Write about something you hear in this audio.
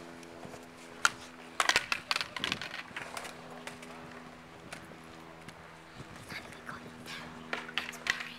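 Skateboards clack and slap sharply against concrete.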